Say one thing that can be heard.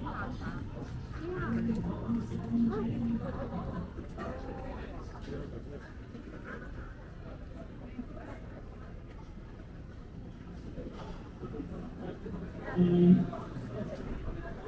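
A crowd of people murmurs and chats nearby.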